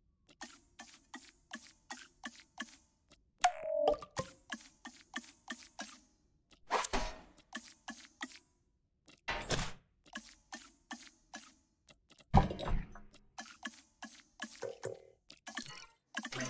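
Short electronic ticks click in quick succession as a menu slider moves.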